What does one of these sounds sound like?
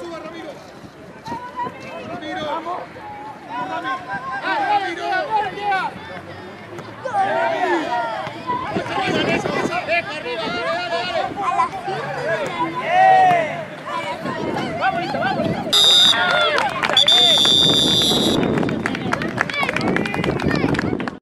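Children and adults shout and cheer outdoors.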